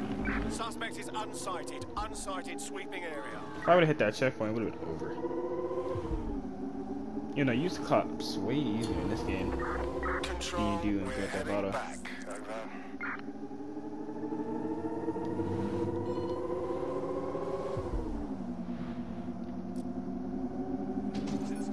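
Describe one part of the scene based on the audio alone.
A car engine hums steadily, rising and falling in pitch as the car speeds up and slows down.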